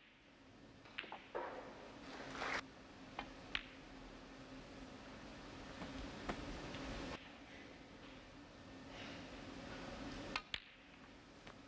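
Snooker balls click against each other on a table.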